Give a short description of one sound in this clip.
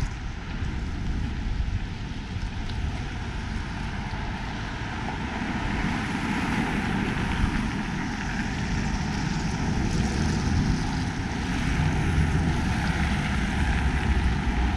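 Wind rumbles loudly across the microphone outdoors.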